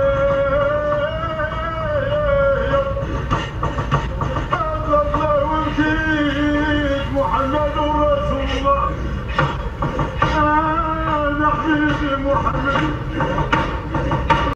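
A car drives along a road with a steady low engine rumble.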